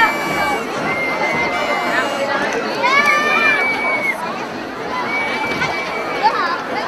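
Young women and girls shout and cheer with high voices.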